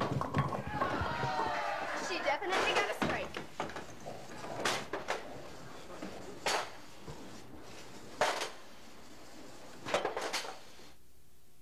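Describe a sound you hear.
Bowling pins clatter and knock together.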